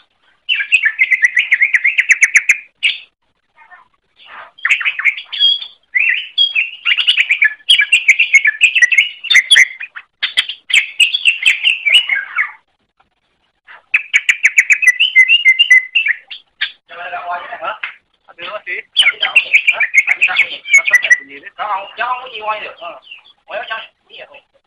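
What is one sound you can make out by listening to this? A small bird sings a fast, chattering song of trills and whistles.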